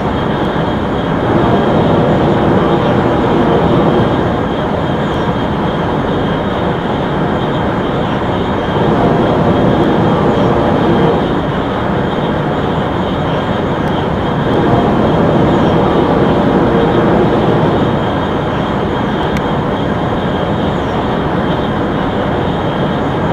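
A high-speed train rushes along the rails with a steady roar.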